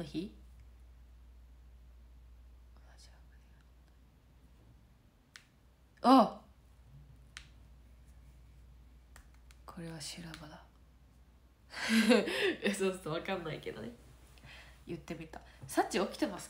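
A young woman speaks casually close to the microphone.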